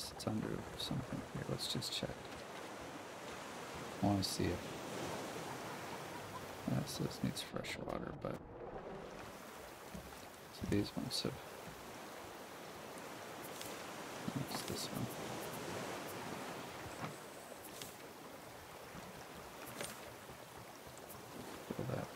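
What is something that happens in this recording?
Ocean waves wash gently nearby.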